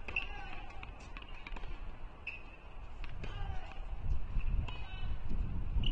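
A tennis ball bounces on a hard court several times.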